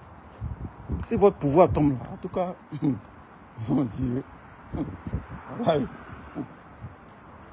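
A man speaks close to a phone microphone, in short calm phrases.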